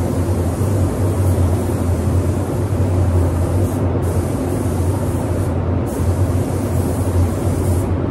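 A spray gun hisses steadily as paint is sprayed.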